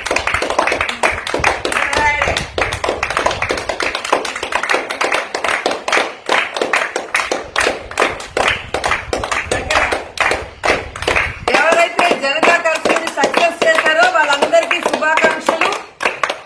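A small group of people claps their hands outdoors.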